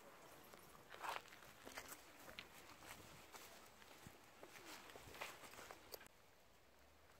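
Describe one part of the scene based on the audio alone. A dog's paws rustle through grass.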